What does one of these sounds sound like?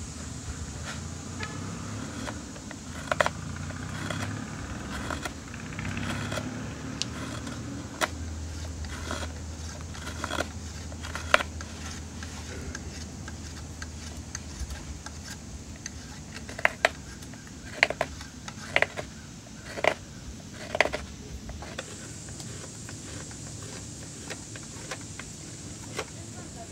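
A knife scrapes and shaves wood up close.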